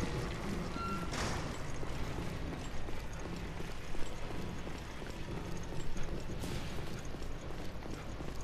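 Footsteps tread along a hard floor.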